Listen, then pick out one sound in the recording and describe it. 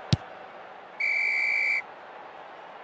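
A referee's whistle blows a long, steady blast.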